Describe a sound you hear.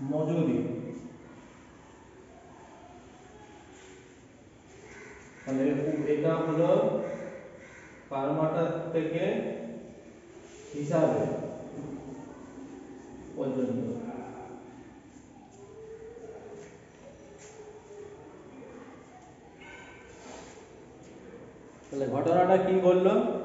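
A man speaks aloud in bursts with pauses.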